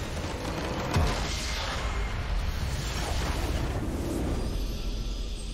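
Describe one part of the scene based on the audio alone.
A base structure explodes with a loud rumbling blast.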